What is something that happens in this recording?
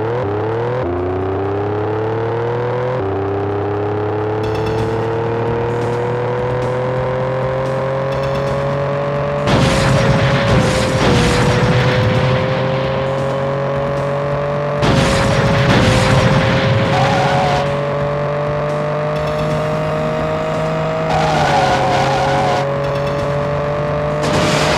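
A car engine drones steadily at high speed, its pitch rising slowly through the gears.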